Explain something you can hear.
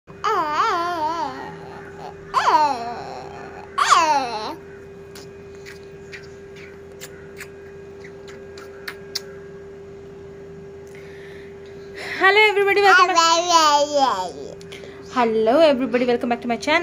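A toddler squeals and babbles in a high voice close by.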